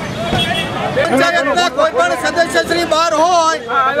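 A middle-aged man speaks loudly and forcefully outdoors.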